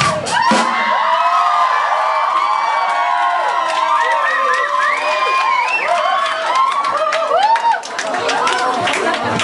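Electric guitars play loudly with bending, wailing notes in a live venue.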